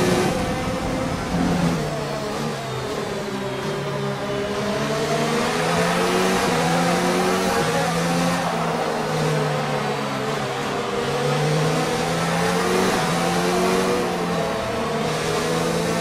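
A racing car engine screams at high revs, rising and dropping in pitch as the gears shift.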